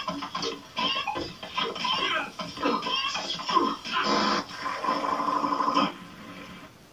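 A short music jingle plays from a television speaker.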